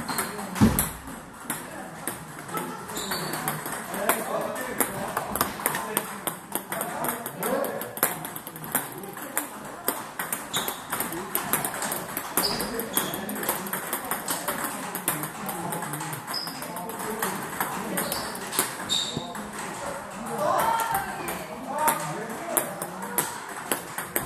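Table tennis balls click rapidly against paddles and tables in a large echoing hall.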